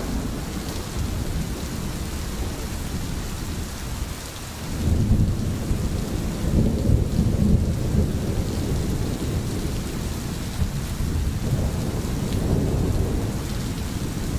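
Rain falls steadily through trees.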